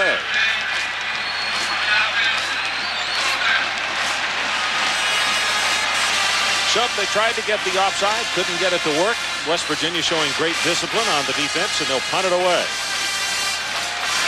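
A large crowd roars and cheers in an open stadium.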